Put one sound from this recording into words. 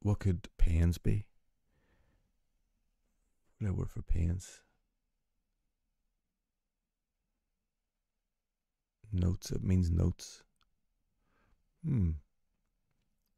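A middle-aged man speaks calmly and thoughtfully into a close microphone, in short bursts with pauses.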